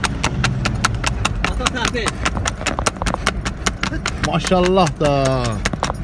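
Horse hooves clatter quickly and evenly on a hard road.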